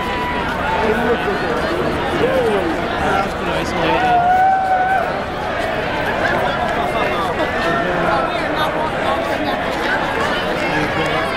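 A large crowd chatters and shouts loudly outdoors.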